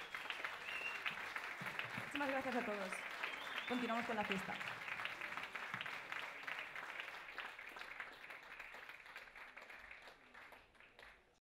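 An audience applauds in a large hall, then the applause fades away.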